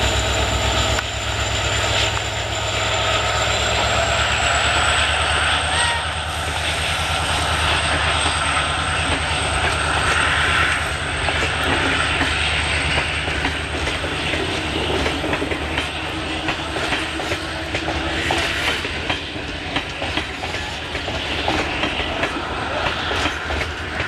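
Train wheels clatter rhythmically over rail joints as coaches roll past.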